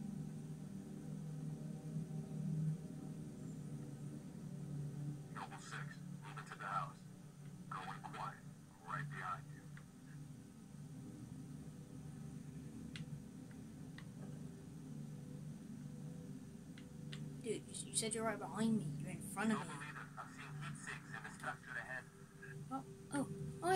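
A video game's sounds play through a television speaker.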